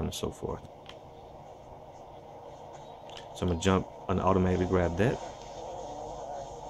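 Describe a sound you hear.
Buttons on a game controller click softly.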